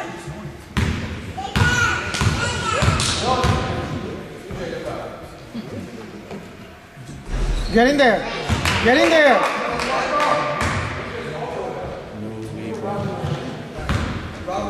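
Spectators chatter and cheer loudly in an echoing gym.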